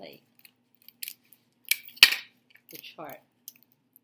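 Sticky tape is pulled and torn from a dispenser.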